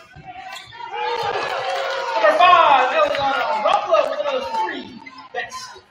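A crowd cheers loudly in the stands.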